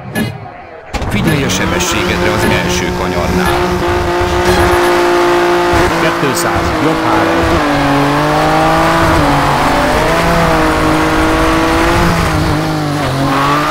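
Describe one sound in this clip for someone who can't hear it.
A rally car engine roars and revs up through the gears.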